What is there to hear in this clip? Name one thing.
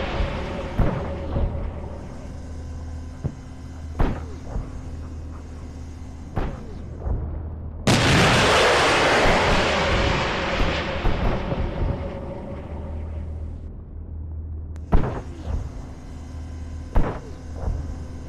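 Heavy guns fire in loud, sharp booms.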